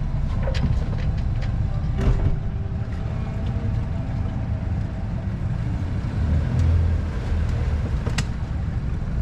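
Rigging clinks and taps against a mast.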